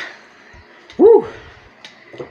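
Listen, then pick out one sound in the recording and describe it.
A man shouts excitedly.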